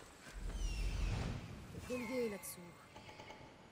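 An eagle screeches.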